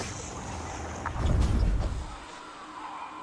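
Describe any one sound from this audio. A soft whoosh swells and fades.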